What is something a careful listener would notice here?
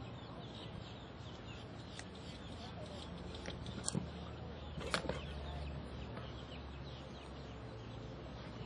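A horse canters with soft hoofbeats on sand.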